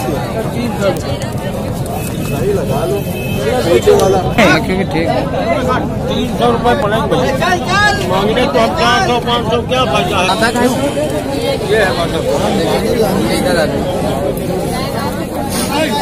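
Several men talk with animation close by, outdoors.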